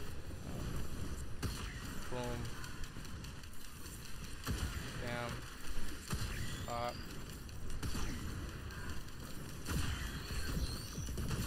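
Gunfire and blasts crack in short bursts.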